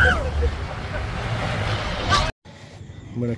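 Men laugh loudly outdoors in strong wind.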